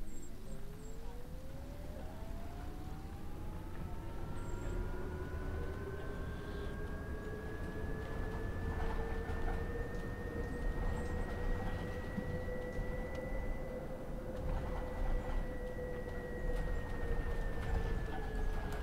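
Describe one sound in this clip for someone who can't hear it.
A bus engine whines, rising in pitch as the bus speeds up.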